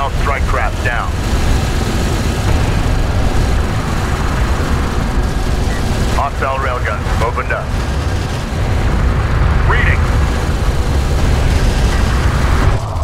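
Heavy vehicle engines rumble low and steadily.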